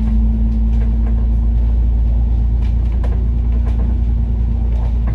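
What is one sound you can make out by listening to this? A bus engine hums and rumbles steadily, heard from inside the bus.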